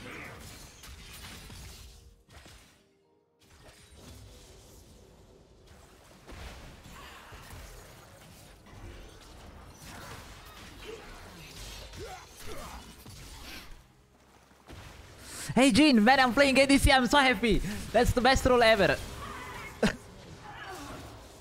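Video game fight effects clash and boom.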